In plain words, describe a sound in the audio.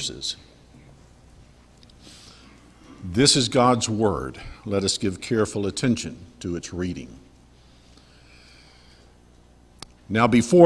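An elderly man speaks calmly and slowly through a microphone in a large room.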